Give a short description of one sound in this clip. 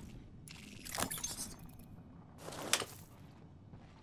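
A short click sounds as an item is picked up.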